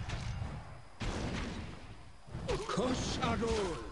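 Magical blasts crackle and burst during a fight.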